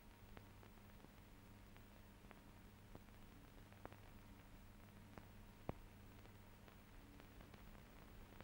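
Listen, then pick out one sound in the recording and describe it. A submarine's engine hums low and steady underwater.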